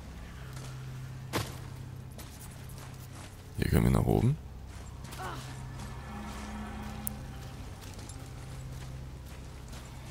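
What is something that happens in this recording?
Heavy footsteps tread on rocky ground.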